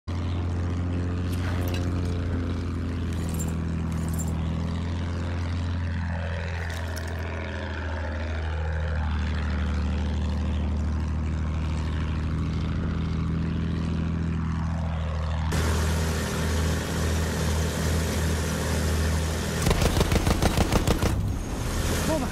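A biplane's piston engine drones in flight.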